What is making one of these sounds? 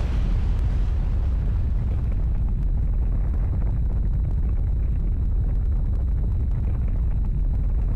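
A deep rumble rolls on as a thick cloud of dust billows.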